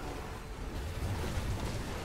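Lightning crackles and bursts.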